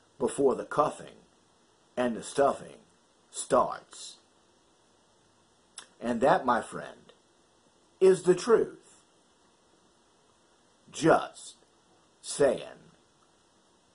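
A middle-aged man speaks calmly and close to a microphone, in short phrases with pauses.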